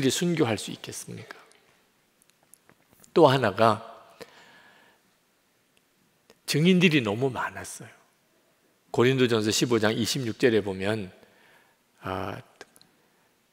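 A middle-aged man speaks with animation through a headset microphone, pausing between phrases.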